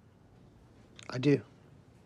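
A young man says a few words briefly.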